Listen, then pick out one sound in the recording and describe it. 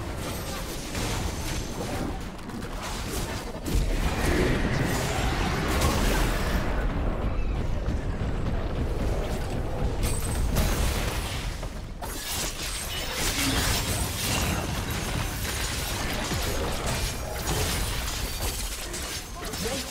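Game spells crackle and boom as fantasy fighters clash.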